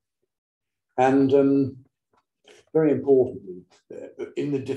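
A middle-aged man reads aloud calmly through a microphone.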